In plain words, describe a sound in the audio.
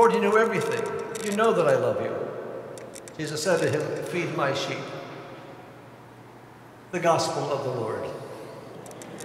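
A man chants in a sung voice through a microphone in a large echoing hall.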